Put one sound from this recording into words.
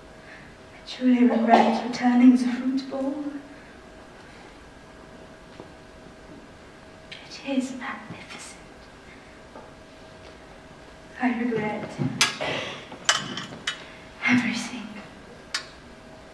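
A woman speaks with feeling from a stage in a large hall, heard from a distance.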